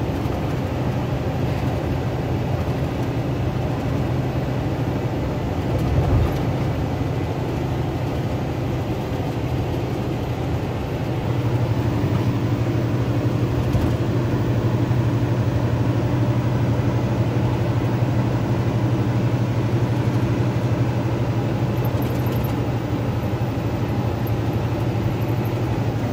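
Tyres roll on asphalt beneath a semi truck.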